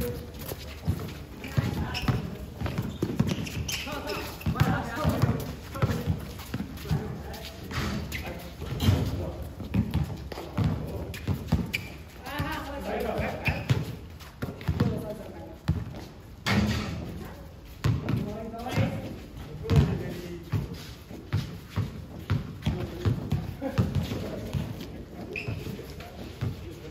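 A basketball bounces on hard ground with dull thumps.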